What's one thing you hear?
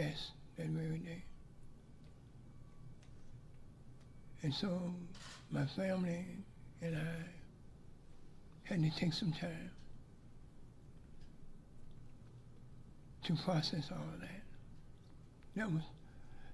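An elderly man speaks slowly into a microphone, with long pauses, in a slightly echoing room.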